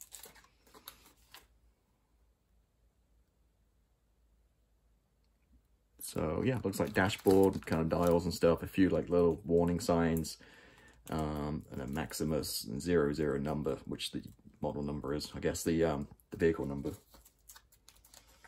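A sheet of paper rustles softly as it is handled.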